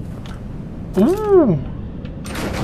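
A young man lets out a short exclamation that rises and falls in pitch.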